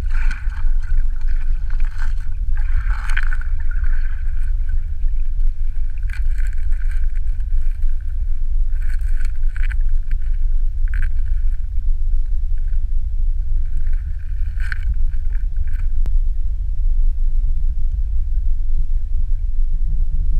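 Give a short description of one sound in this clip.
A stream rushes over stones, heard as a deep underwater rumble.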